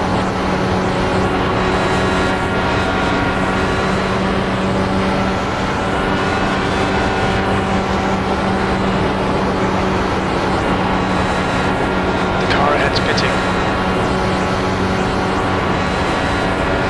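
An open-wheel racing car engine drones at full throttle.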